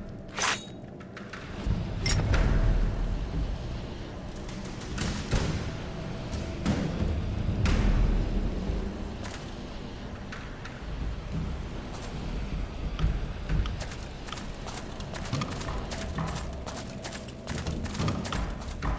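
An armoured warrior's footsteps clank on stone.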